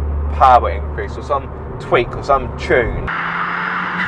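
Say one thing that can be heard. A man speaks with animation inside a car.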